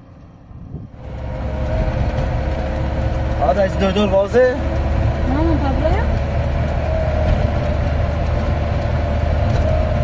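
A vehicle's engine rumbles steadily, heard from inside the cab.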